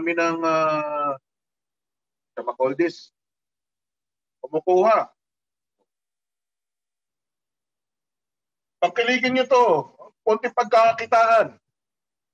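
A middle-aged man talks calmly over an online call, with pauses.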